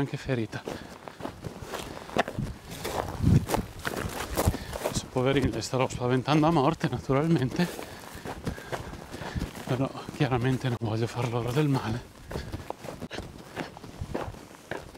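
Footsteps crunch on dry, stony ground.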